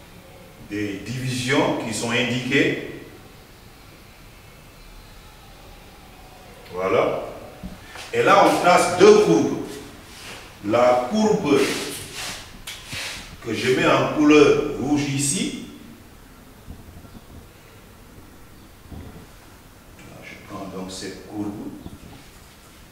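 A man speaks calmly, explaining, close to a microphone, in short bursts with pauses.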